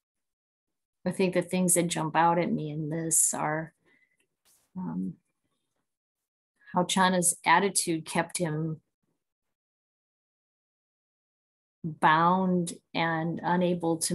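A middle-aged woman speaks calmly and warmly, close to the microphone, in pauses.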